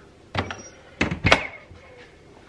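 A plastic lid clicks shut.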